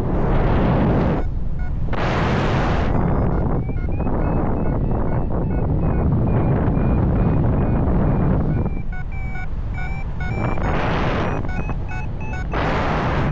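Wind rushes loudly past, rising and falling in gusts.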